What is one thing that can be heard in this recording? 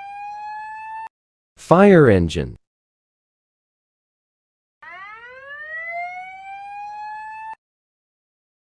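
A fire engine siren wails, rising and falling.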